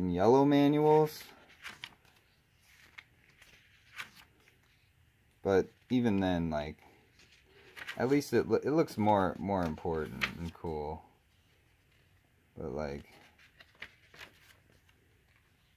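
Paper pages of a booklet turn with a soft rustle.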